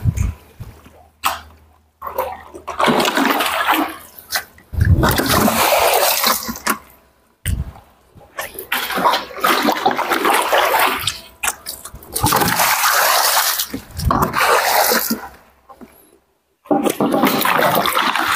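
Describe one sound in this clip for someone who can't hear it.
Water pours and splashes from a bucket into a pool.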